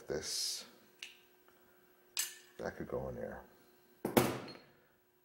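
Metal tools click and clink against a small metal part.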